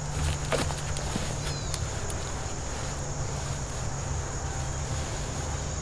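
A man cuts into a tree trunk with a small saw.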